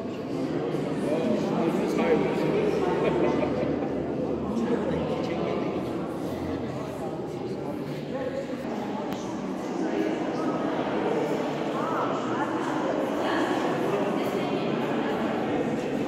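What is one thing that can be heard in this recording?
A crowd of people murmur and chat in a large echoing hall.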